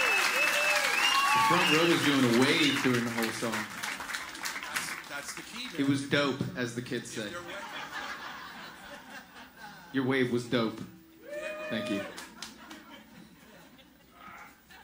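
A crowd claps and cheers in a large room.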